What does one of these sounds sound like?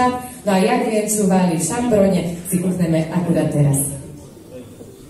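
A child speaks into a microphone, heard through loudspeakers in an echoing hall.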